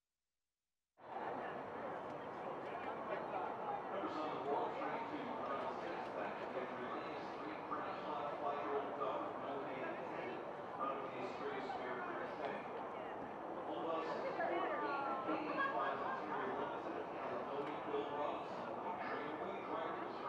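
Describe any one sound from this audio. Several men and women chatter and call out nearby, outdoors.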